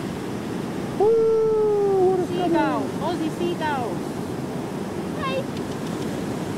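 A silver gull calls.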